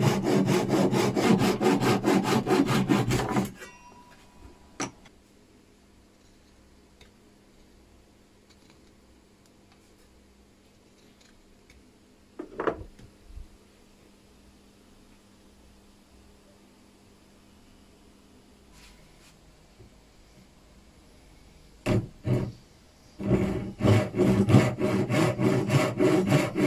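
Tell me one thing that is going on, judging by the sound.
A hand saw cuts through hardwood in strokes.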